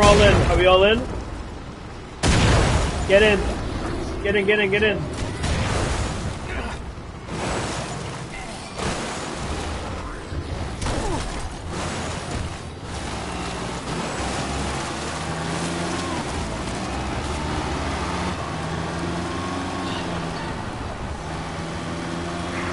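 A car engine hums steadily as a car drives along a rough track.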